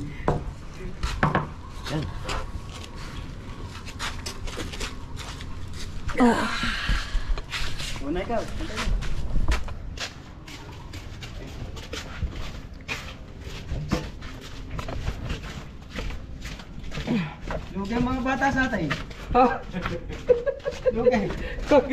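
Footsteps scuff along a hard path.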